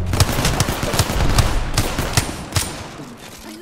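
A rifle fires a quick string of sharp shots.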